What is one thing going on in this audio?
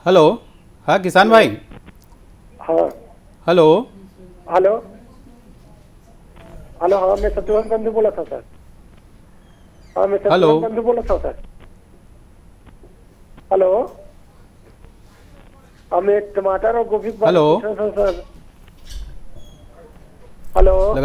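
A man speaks calmly and close by through a microphone, in short bursts with pauses.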